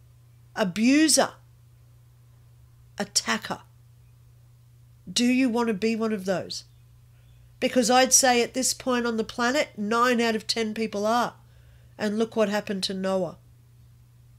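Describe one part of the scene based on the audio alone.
A middle-aged woman speaks calmly and close to the microphone, in short bursts with pauses.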